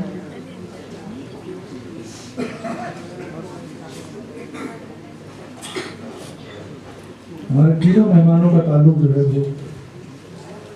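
A man speaks loudly through a microphone and loudspeakers in an echoing hall.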